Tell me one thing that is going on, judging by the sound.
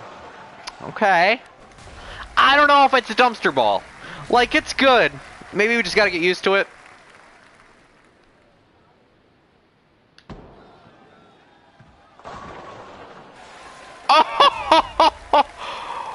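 Bowling pins crash and scatter.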